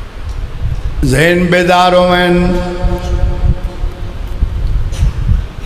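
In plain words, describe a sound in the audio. A middle-aged man chants long drawn phrases through a microphone.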